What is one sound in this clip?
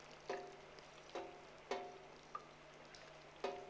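A china cup clinks against a saucer.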